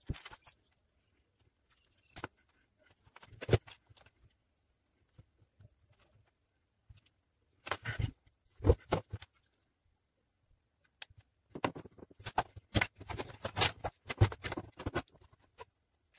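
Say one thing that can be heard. Small plastic plugs click and tap as they are handled.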